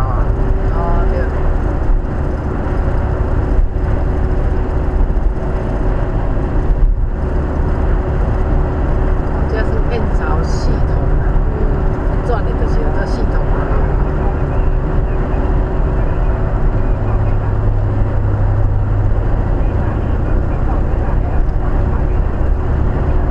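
A car's engine hums steadily while driving at speed.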